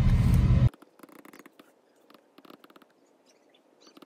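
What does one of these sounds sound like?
A stylus taps on a tablet.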